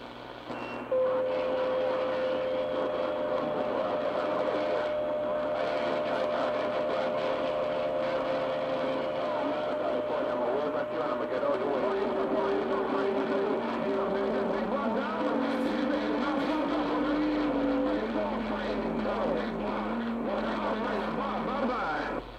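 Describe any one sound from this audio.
A radio loudspeaker whistles with steady, shifting tones.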